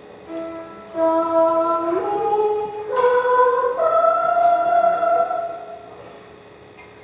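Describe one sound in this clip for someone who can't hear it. A man sings a slow, held tune in a large hall.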